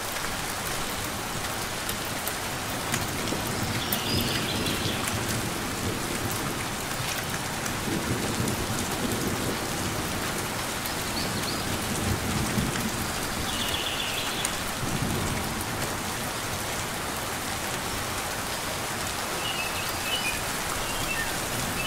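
Steady rain patters outdoors.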